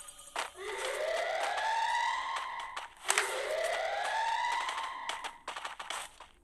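A wall of ice forms with a rising, whooshing tone.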